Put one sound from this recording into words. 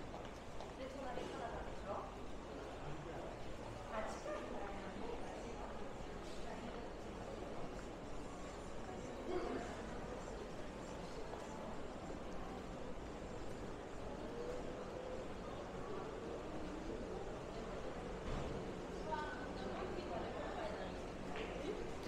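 A crowd of men and women murmur and chat nearby, with voices echoing softly.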